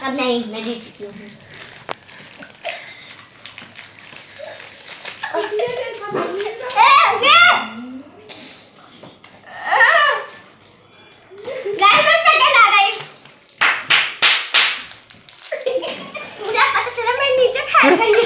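Young girls talk and shout excitedly close by.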